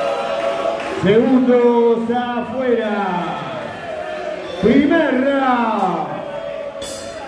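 A man in the crowd shouts loudly.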